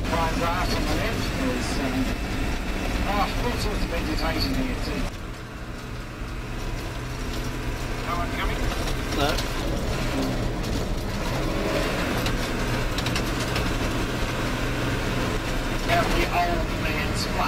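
Tyres rumble and crunch on a gravel road.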